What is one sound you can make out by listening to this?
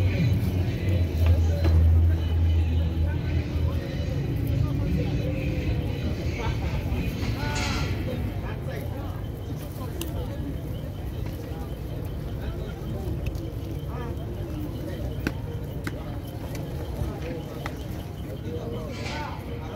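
Pigeon beaks peck rapidly at grain on the ground.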